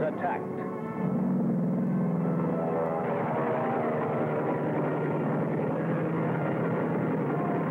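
Aircraft engines drone steadily overhead.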